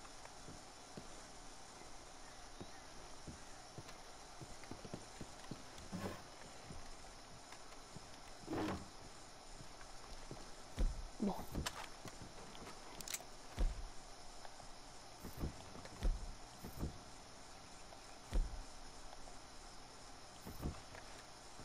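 Footsteps creak on a wooden floor.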